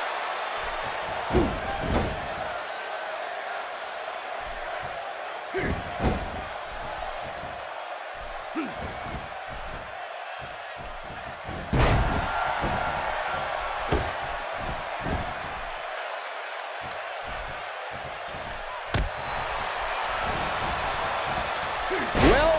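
Punches and strikes thud against a body.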